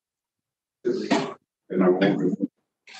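An elderly woman speaks through an online call.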